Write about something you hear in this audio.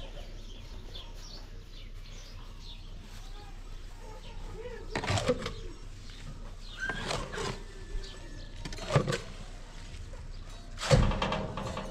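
A shovel scrapes against a metal wheelbarrow as its load is tipped in.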